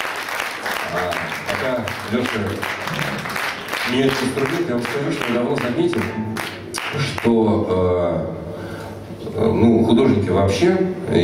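A small band plays acoustic music on guitar and violin.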